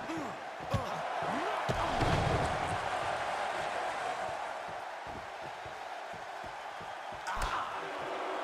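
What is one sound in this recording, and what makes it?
A crowd cheers steadily in a large arena.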